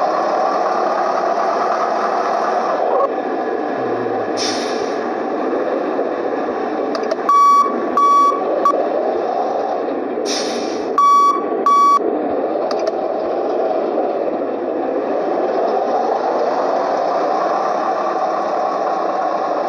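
A bus engine drones steadily.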